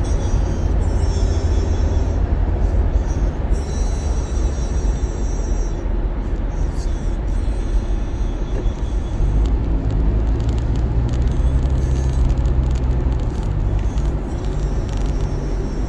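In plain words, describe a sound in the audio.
A car's engine hums and its tyres roar steadily on a highway.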